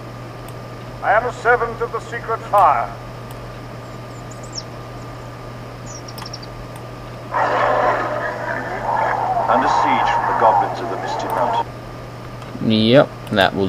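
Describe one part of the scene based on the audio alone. Short game sound clips play in bursts as volume settings are adjusted.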